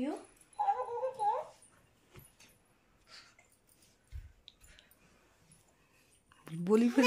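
A toy plays a high, squeaky singing tune in short bursts.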